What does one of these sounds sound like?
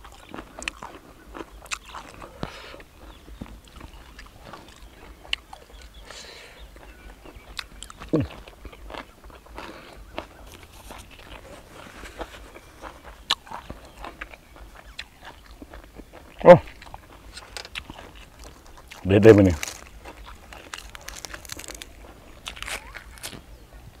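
A man chews food with wet smacking sounds close to the microphone.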